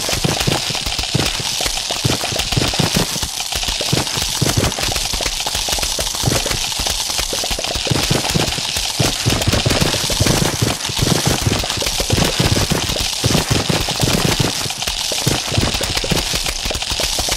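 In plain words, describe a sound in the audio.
Game sound effects thump and pop rapidly as shots hit attackers.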